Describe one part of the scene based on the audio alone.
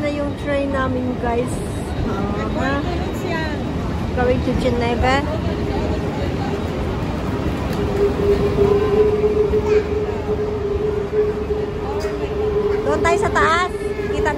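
A train rolls slowly into a station, its wheels rumbling.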